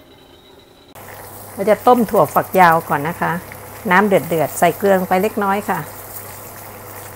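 Water boils and bubbles in a pot.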